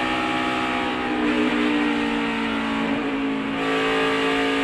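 A race car engine briefly drops in pitch, then climbs back to a steady roar.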